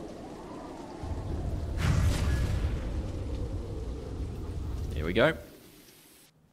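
The ground cracks and crumbles with a deep rumble.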